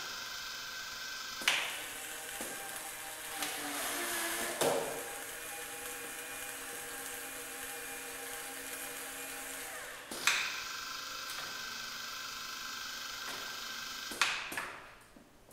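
A small machine hums steadily with a motor whirring.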